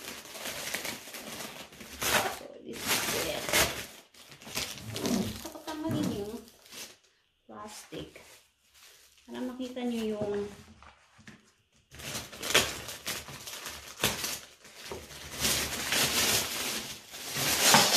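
Plastic wrapping crinkles and rustles loudly close by.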